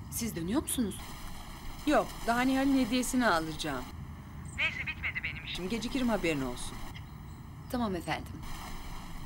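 A young woman talks animatedly on a phone.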